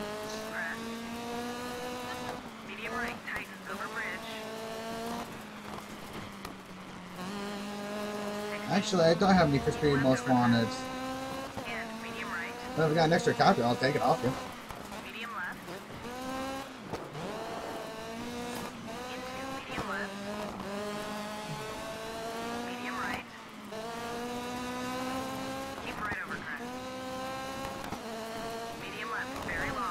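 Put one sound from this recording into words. Tyres crunch and skid on gravel.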